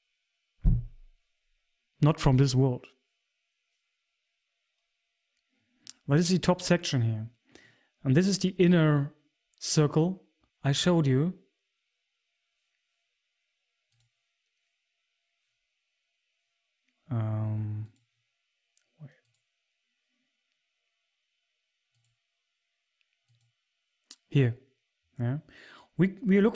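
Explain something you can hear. A man talks with animation, close to a microphone, in short bursts with pauses.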